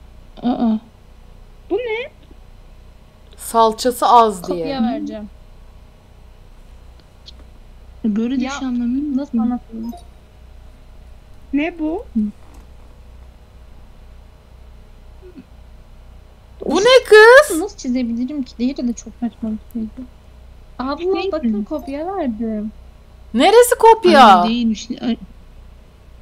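A young woman speaks with animation into a close microphone, in short bursts with pauses.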